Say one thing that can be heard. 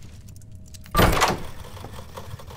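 A door swings open with a loud creak and thud.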